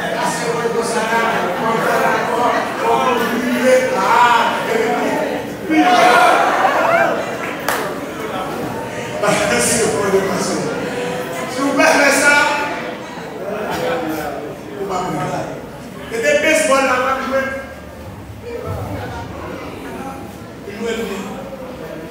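A man preaches with animation through a microphone and loudspeakers in an echoing hall.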